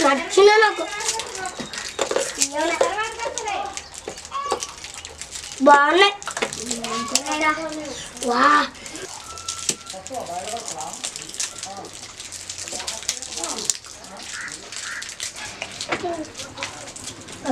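Young children talk and call out excitedly nearby.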